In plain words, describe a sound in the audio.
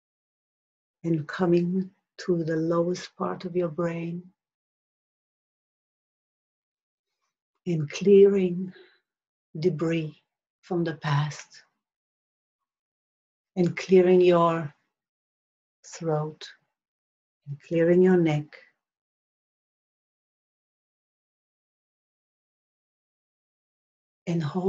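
A woman speaks calmly and slowly, close by, with long pauses.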